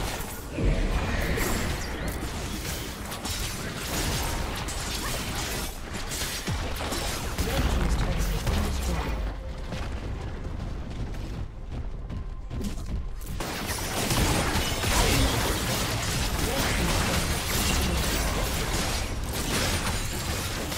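Game spell effects crackle and blast during a battle.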